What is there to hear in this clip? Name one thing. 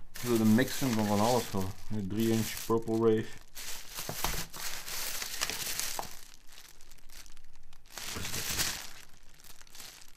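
Plastic wrapping crinkles in a hand.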